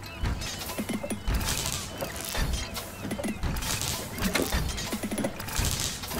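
Short chimes ring as gems are matched.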